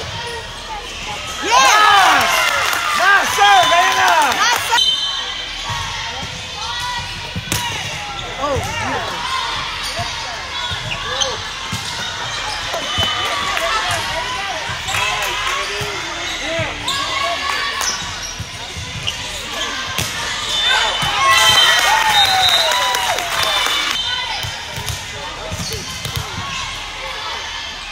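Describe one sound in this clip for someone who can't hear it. Spectators chatter and cheer loudly after a point.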